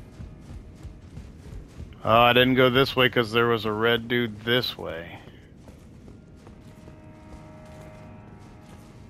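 Footsteps walk steadily on a stone floor.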